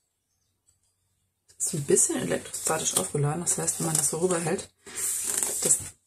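A stiff paper card slides out of a paper pocket with a soft rustle.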